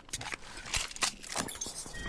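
A gun clicks as it is picked up.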